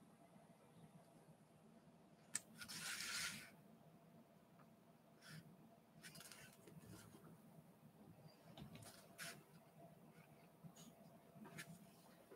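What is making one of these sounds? A pen scratches lightly on paper.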